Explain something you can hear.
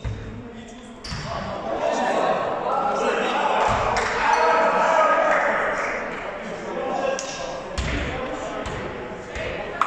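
Young men call out to each other across the echoing hall.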